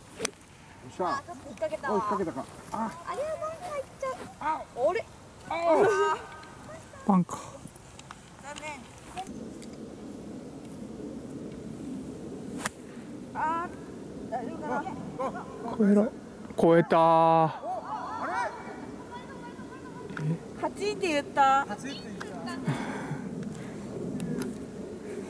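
A young woman talks and exclaims with animation nearby.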